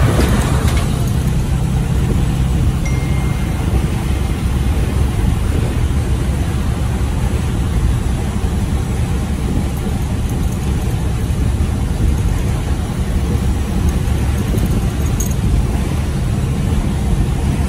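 Tyres hum on a road surface.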